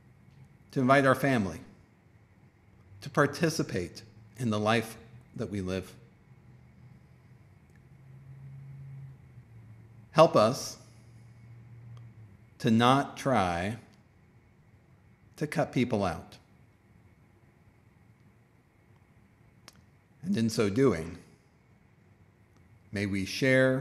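A man speaks calmly and slowly, with long pauses, over an online call.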